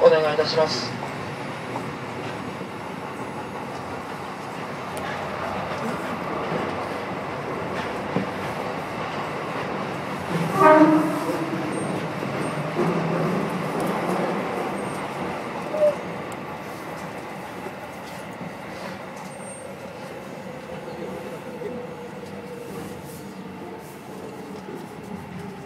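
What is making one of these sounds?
A train rumbles steadily through a tunnel, its wheels clattering on the rails.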